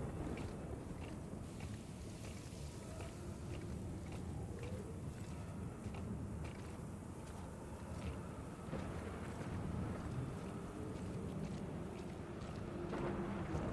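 A strong wind howls steadily through a snowstorm.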